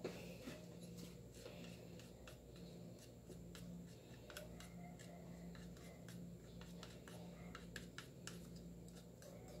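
A plastic spoon scrapes and taps against a plastic bowl.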